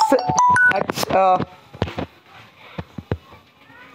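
A phone ringtone plays.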